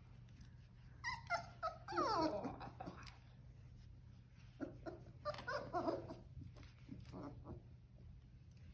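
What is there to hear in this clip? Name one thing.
A young woman talks softly and warmly close by.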